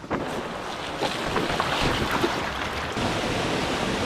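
Bike tyres splash through shallow water.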